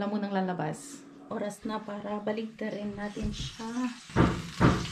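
A young woman talks to the microphone up close.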